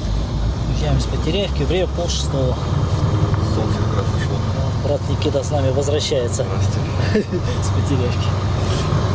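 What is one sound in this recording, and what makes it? A bearded man talks close by with animation.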